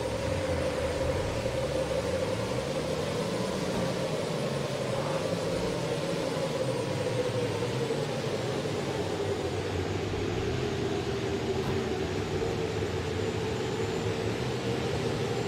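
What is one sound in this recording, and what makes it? A car engine drones loudly, its pitch rising and falling as it speeds along.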